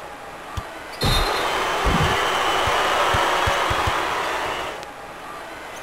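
A large crowd cheers loudly, then dies down.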